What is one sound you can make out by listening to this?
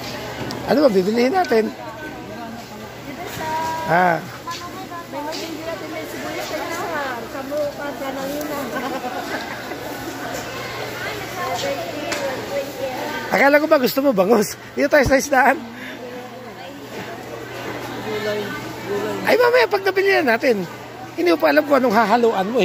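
A crowd of people chatter all around.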